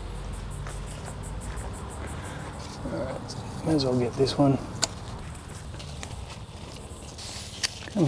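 Leaves rustle as a man's hands push through plants.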